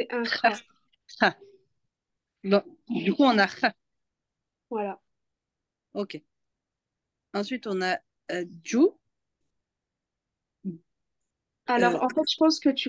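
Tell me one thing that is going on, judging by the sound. A young woman speaks slowly and clearly over an online call, with pauses between words.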